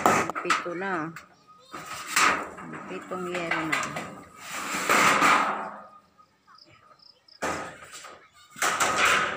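Corrugated metal sheets rattle and bang as they are moved.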